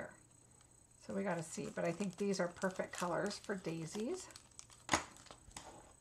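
A plastic sheet crinkles.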